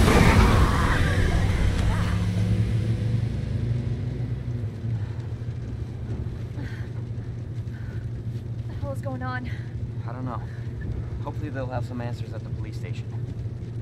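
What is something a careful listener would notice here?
A car engine hums low and steady.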